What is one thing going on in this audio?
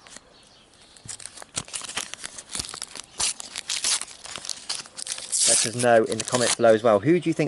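A foil sticker packet crinkles and rustles as it is torn open.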